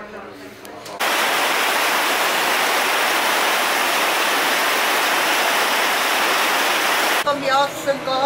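A river rushes loudly over stones.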